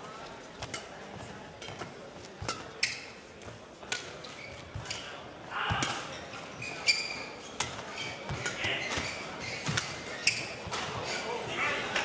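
A racket strikes a shuttlecock again and again in a rally.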